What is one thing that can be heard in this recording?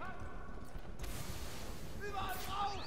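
A smoke bomb bursts with a loud hiss.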